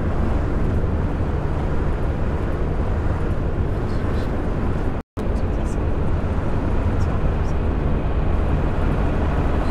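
Tyres roar on a motorway.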